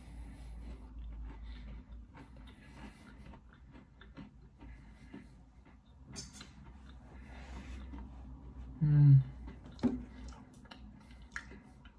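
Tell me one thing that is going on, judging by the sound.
A man chews food noisily close to a microphone.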